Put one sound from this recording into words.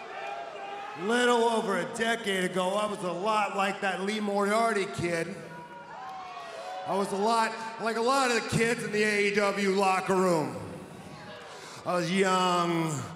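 A man speaks loudly and forcefully into a microphone, heard over loudspeakers.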